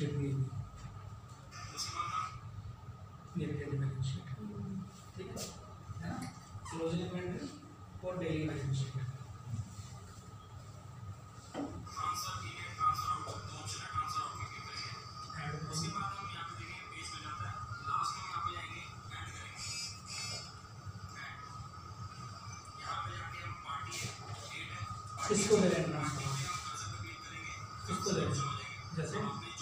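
A man speaks calmly to a small group nearby.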